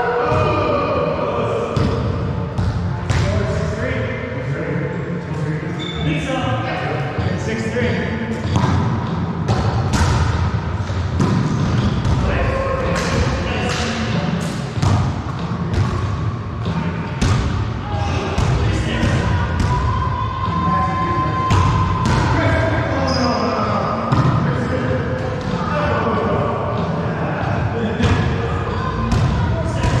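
Men call out to each other and talk loudly.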